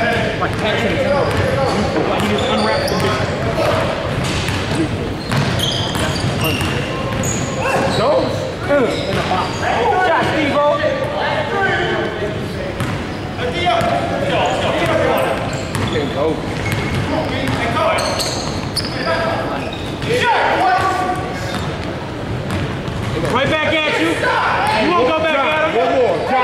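Young men call out to each other across the gym.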